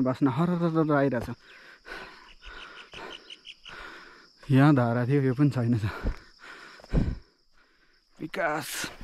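Footsteps crunch on a stony dirt path.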